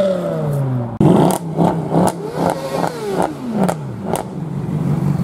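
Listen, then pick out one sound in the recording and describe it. A car exhaust pops and crackles sharply.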